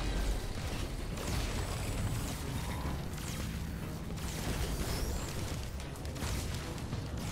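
Weapons swing and strike with sharp game sound effects.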